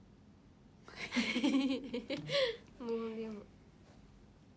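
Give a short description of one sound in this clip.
Young women laugh together.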